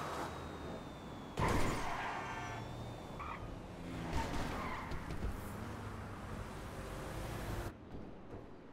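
A sports car engine hums as it drives along a road.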